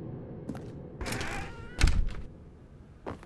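A door creaks open with a loud thud.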